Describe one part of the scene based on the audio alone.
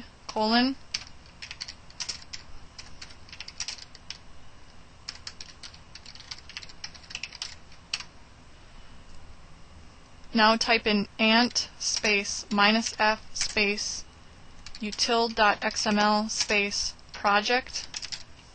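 Keys click on a keyboard in quick bursts.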